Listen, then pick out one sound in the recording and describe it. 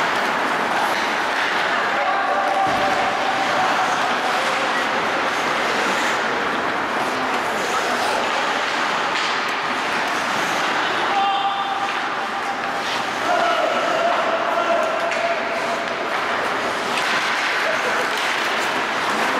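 Hockey sticks clack against the ice.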